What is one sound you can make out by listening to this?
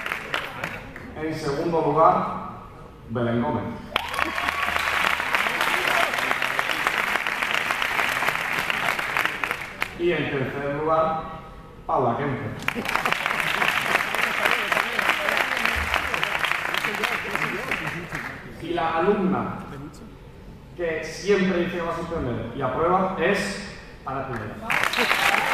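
A young man speaks through a microphone in a large echoing hall.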